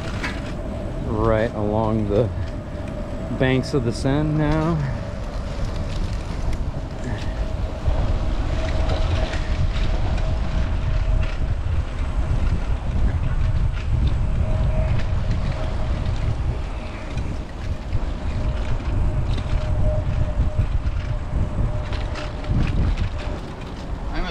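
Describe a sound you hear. Bicycle tyres roll on a paved path.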